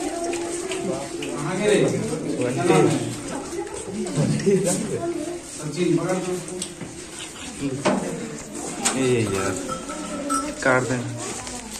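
A young man speaks clearly and close by.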